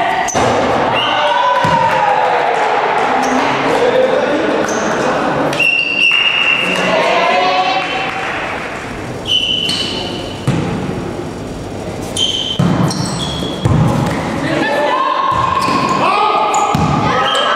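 Sneakers squeak sharply on the floor.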